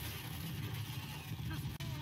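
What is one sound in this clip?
A flamethrower roars.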